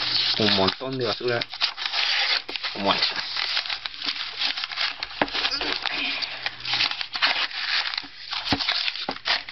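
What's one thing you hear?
A knife blade slices through paper.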